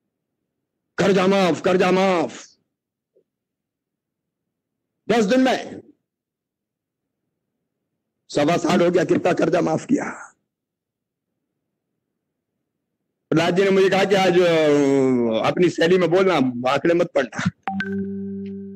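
A middle-aged man speaks forcefully into a microphone over loudspeakers, in short bursts with pauses.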